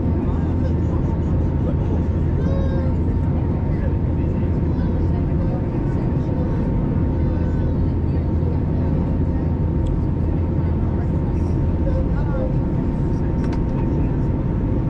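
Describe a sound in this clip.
A jet engine roars steadily, heard from inside an airliner cabin.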